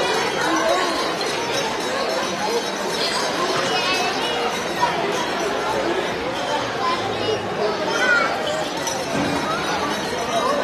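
A crowd of children and adults chatter loudly in an echoing hall.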